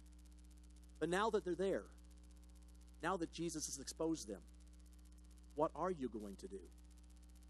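A man speaks calmly into a microphone through a loudspeaker, in short phrases with pauses.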